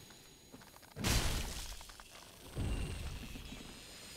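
Heavy sword blows strike in a game fight.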